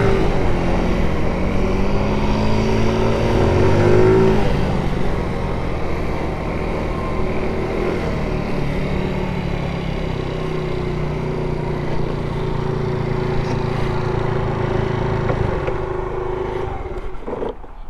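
A scooter engine hums steadily as it rides along, then cuts out.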